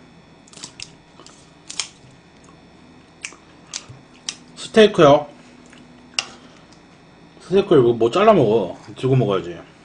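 Scissors snip through meat.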